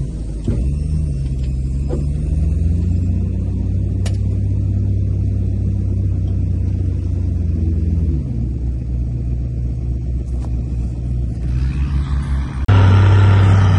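A diesel engine idles nearby with a low, steady rumble.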